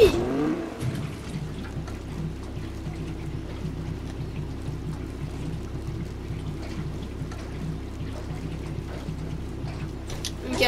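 Fuel pours steadily from a can into a car's tank.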